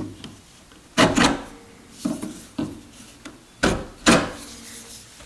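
A marking gauge clicks against wood.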